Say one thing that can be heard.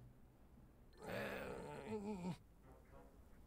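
A small cartoon creature squeaks and chatters.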